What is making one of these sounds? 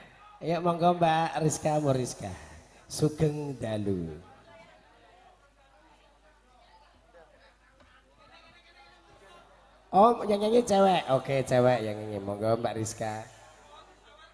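A man sings loudly through a microphone and loudspeakers.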